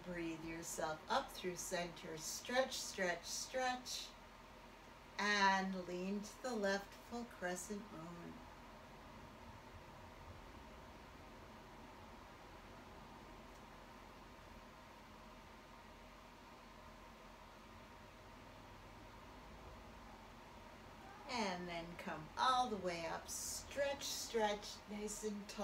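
An older woman speaks calmly and clearly close by.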